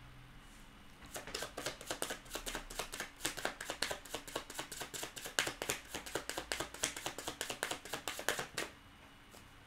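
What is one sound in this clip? Cards shuffle with rapid soft riffling clicks.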